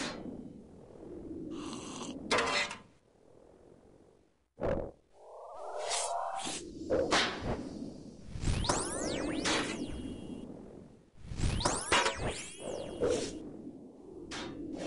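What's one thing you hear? Sharp magical zaps and swooshes ring out again and again during a fight.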